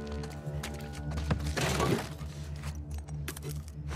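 A drawer slides open.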